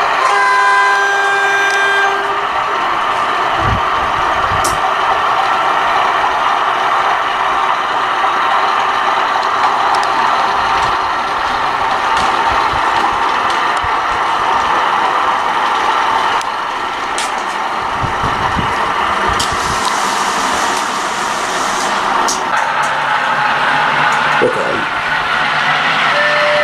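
A model train rumbles and whirs steadily along the track.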